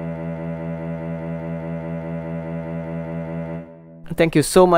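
A synthesized cello plays a steady low note.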